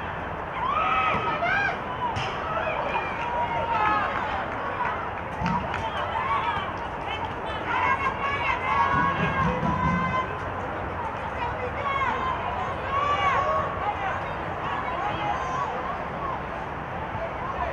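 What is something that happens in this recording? Young women shout and call out to each other across an outdoor field.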